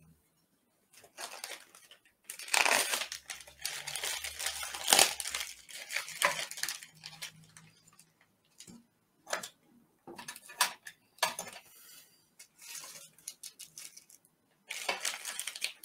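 Plastic packaging crinkles and rustles close by as it is torn open and handled.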